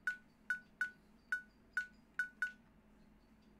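Short electronic menu beeps tick quickly.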